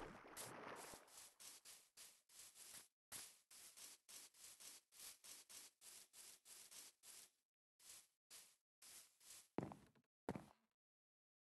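Footsteps pad softly and quickly over grass.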